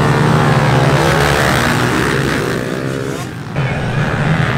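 Dirt bike engines rev loudly up close.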